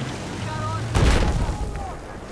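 A heavy gun fires with a loud, deep boom.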